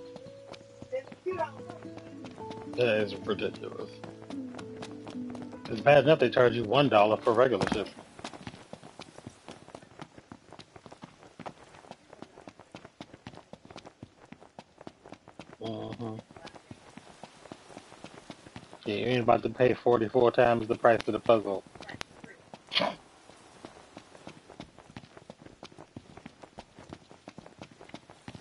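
Footsteps run quickly over gravelly ground.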